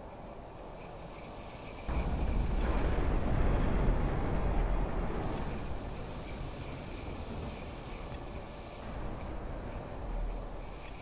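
Old car engines rumble as cars drive past one after another.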